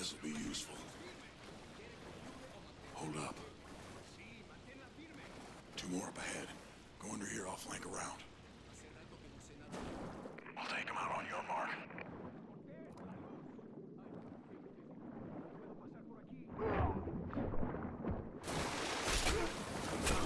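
Water sloshes and splashes.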